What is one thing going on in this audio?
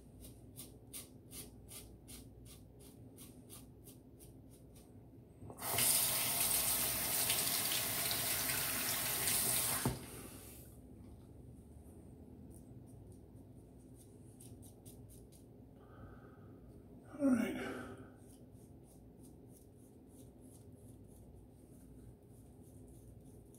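A razor scrapes through stubble in short, quick strokes.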